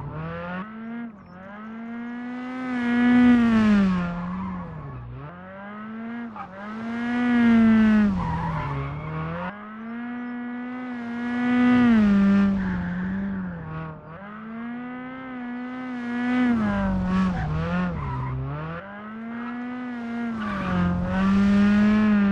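A turbocharged four-cylinder rally car engine revs hard, rising and dropping through gear changes.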